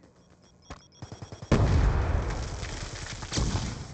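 A rifle fires a rapid burst of loud shots close by.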